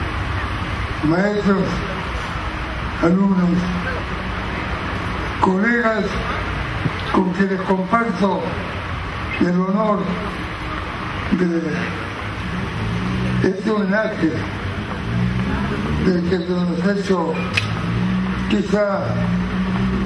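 An elderly man speaks slowly, with pauses, through a microphone and loudspeaker in a large hall.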